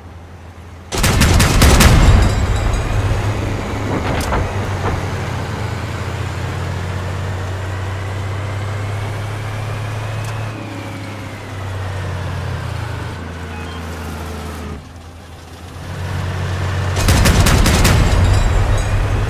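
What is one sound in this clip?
A cannon fires with a loud boom and a blast.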